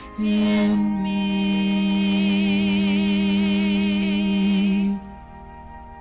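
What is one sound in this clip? A woman sings a sustained melody with vibrato through a microphone.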